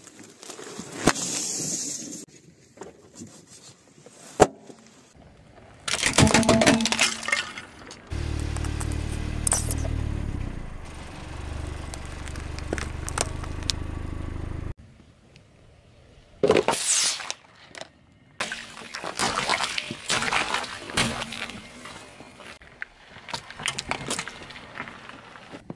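A car tyre rolls over and crushes objects on the ground.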